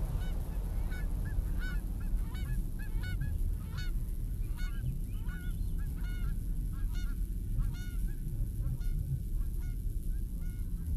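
Birds chirp repeatedly in the distance.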